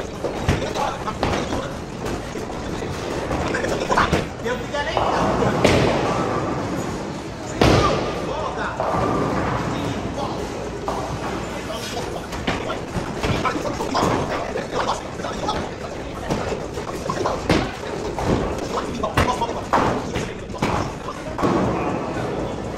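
A busy bowling hall echoes with loud, reverberant noise throughout.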